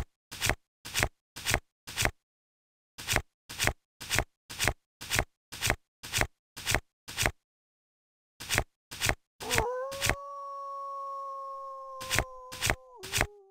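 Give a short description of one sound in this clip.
Blocks snap into place with quick, regular popping sounds.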